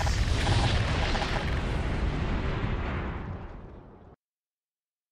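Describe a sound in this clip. A loud explosion rumbles and slowly fades away.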